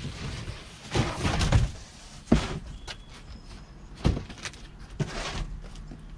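A large cardboard box thuds onto concrete.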